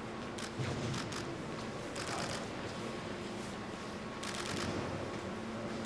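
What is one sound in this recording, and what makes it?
Footsteps shuffle along a hard floor.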